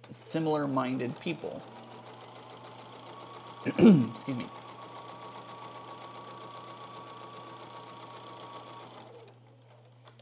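A sewing machine hums and whirs steadily.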